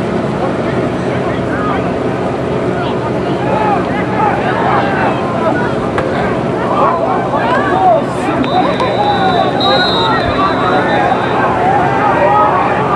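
A crowd of people shouts and chatters outdoors.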